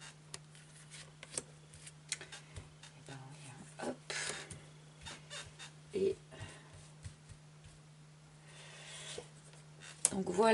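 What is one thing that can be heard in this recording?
A card deck rustles as cards are shuffled and drawn.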